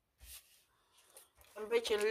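Paper rustles and slides as sheets are handled.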